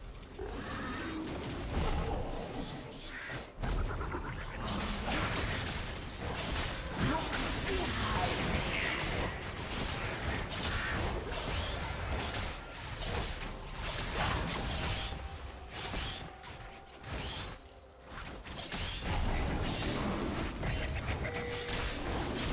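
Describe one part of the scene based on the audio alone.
Game combat effects clash and crackle rapidly.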